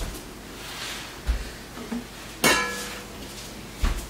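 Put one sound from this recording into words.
A heavy pot thuds down onto a counter.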